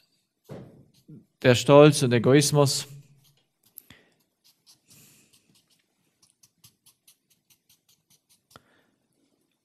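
A marker taps and squeaks on paper.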